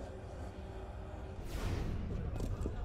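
A climber lands heavily with a thud.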